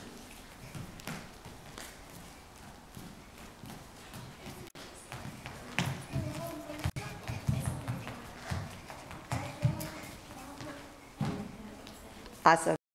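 Light footsteps patter and shuffle on a hard floor.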